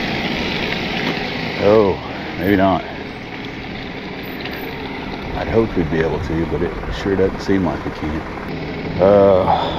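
A diesel tow truck engine rumbles.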